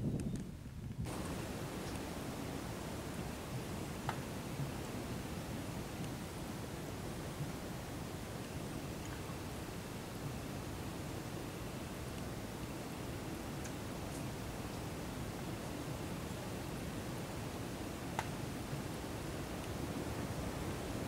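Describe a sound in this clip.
Water sloshes softly around people wading slowly.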